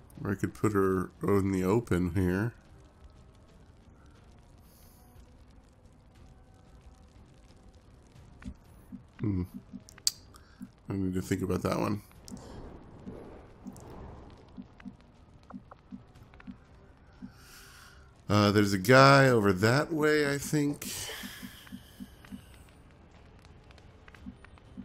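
Flames crackle and roar softly.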